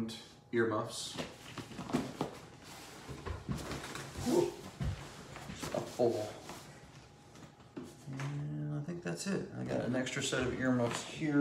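Fabric rustles as a bag is handled.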